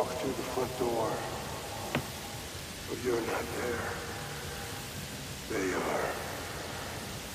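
A man talks casually and close into a microphone, in short bursts.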